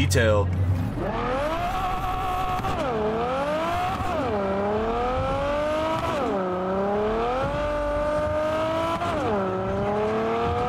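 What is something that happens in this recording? A car engine revs up and drops repeatedly as gears shift.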